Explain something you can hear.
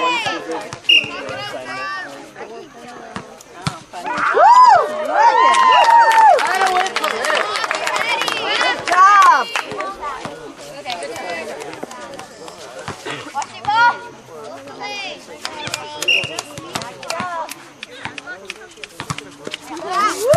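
A volleyball thumps as players hit it.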